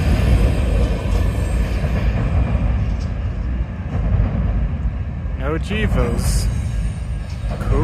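A freight train rumbles and clatters past on the tracks.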